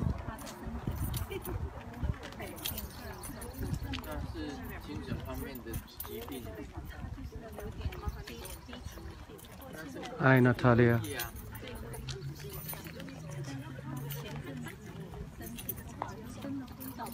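Footsteps shuffle on pavement as a group walks.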